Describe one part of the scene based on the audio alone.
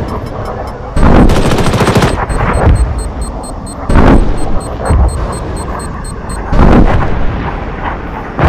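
A missile explodes with a loud boom.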